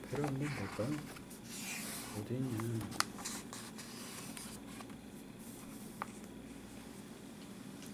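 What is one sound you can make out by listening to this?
Paper pages rustle as they are turned by hand.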